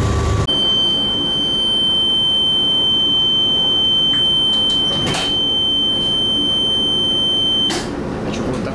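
A train door warning tone sounds steadily.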